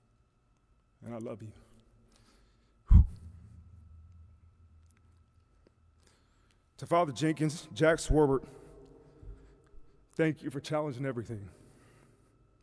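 A man speaks slowly and emotionally into a microphone in a large hall.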